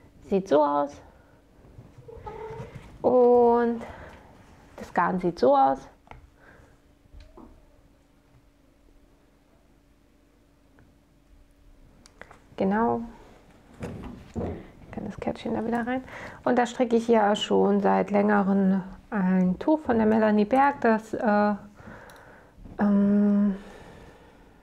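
A young woman talks calmly close to a microphone, with pauses.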